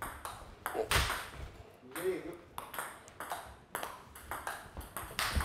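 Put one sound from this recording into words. A table tennis ball clicks sharply off a paddle and bounces on a table, again and again in a quick rhythm.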